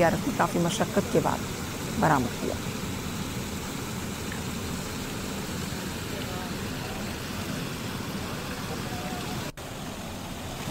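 River water rushes steadily over rocks.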